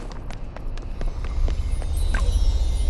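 Quick footsteps patter on stone steps.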